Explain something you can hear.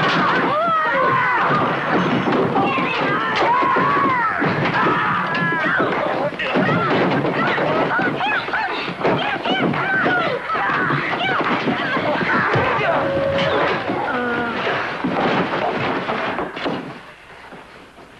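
Thumps and knocks of a scuffle sound close by.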